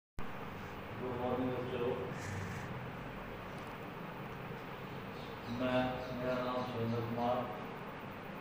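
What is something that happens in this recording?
A middle-aged man speaks calmly and clearly, close by, with pauses.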